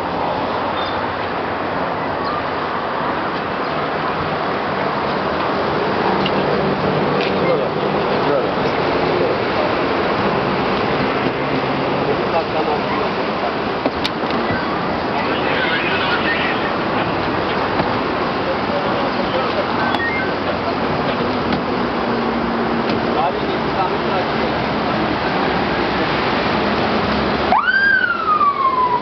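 A crowd of men talk and murmur outdoors.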